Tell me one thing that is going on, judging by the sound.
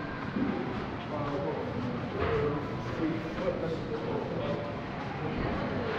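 Indistinct voices murmur far off in a large echoing hall.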